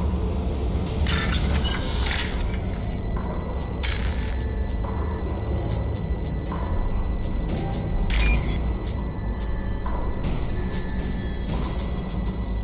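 Electronic beeps and chirps sound in quick bursts.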